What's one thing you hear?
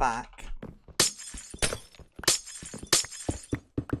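A pickaxe chips at stone blocks with sharp knocks.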